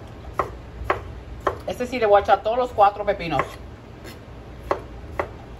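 A knife chops through cucumber onto a wooden cutting board.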